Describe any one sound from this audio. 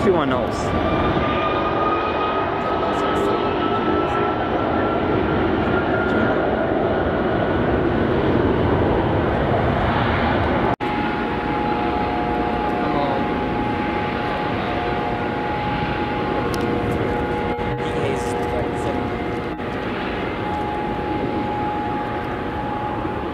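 A jet airliner's engines roar with a steady, high whine as it taxis close by.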